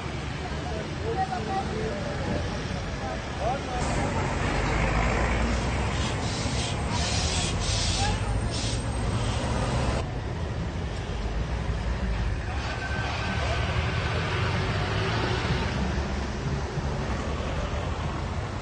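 A crowd of men and women murmurs and talks outdoors.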